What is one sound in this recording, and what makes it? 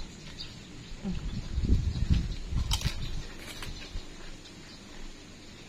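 A woman chews food with her mouth close by.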